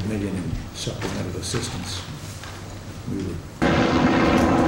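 A man speaks calmly in a quiet room.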